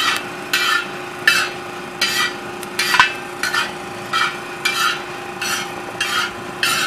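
A metal skimmer scrapes and stirs rattling grains in a hot iron pan, in quick rhythmic strokes.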